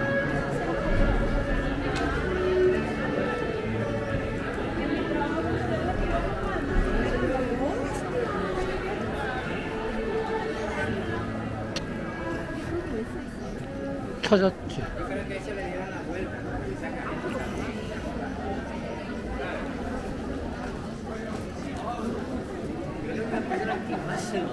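Many people chatter nearby in a busy street, outdoors.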